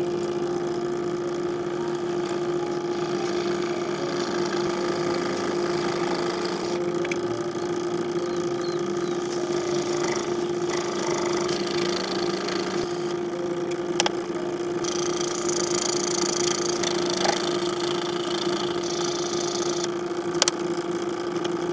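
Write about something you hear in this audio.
A scroll saw blade buzzes as it cuts through a thin sheet.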